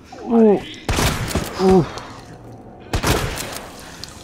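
Gunshots ring out loudly and echo.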